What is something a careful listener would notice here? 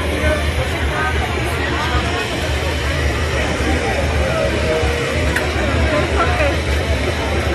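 A crowd of men and women chatters close by, outdoors.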